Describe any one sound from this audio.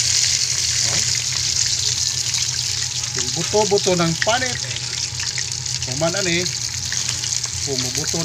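Hot oil sizzles and crackles steadily in a pan.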